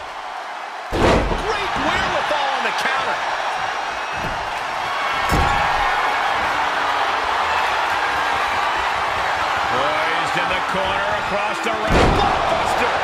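Bodies slam heavily onto a ring mat a few times.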